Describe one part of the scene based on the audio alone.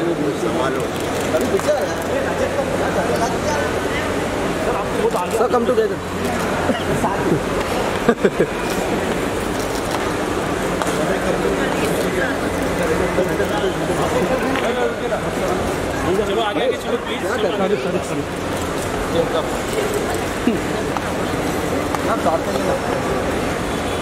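Men nearby call out loudly.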